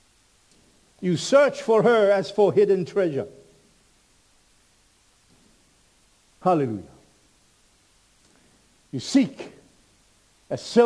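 An older man speaks with feeling into a microphone, in bursts with pauses.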